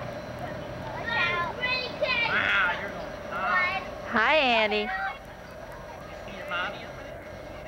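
A small child squeals and chatters excitedly close by.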